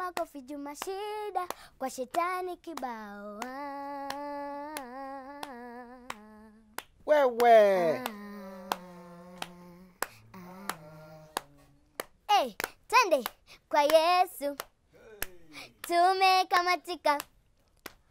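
A young child sings and speaks dramatically into a microphone.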